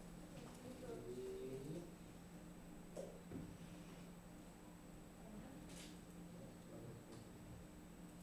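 Young boys talk quietly nearby in a room.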